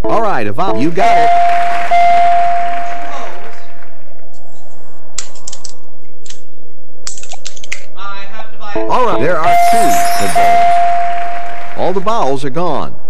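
A bright electronic chime rings as letters light up.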